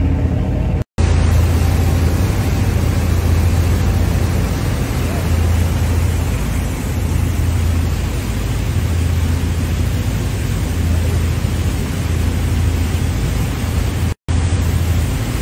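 Water rushes and churns in a boat's wake.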